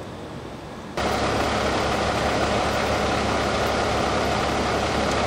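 Steam hisses steadily from a wrecked car's engine.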